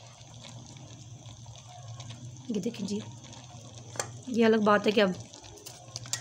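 A metal spatula scrapes and stirs vegetables in a metal pot.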